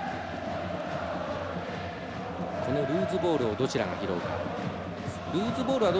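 A stadium crowd chants and cheers in the distance.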